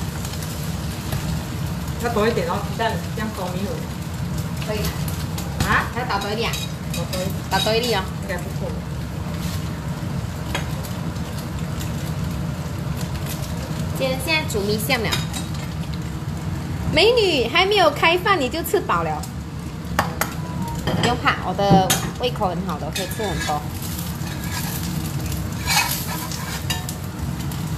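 Eggs sizzle softly in a hot pan.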